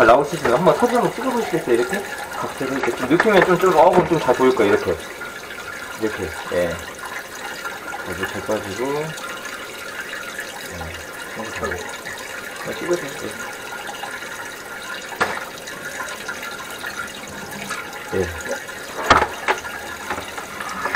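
A metal drain cable scrapes and knocks inside a pipe.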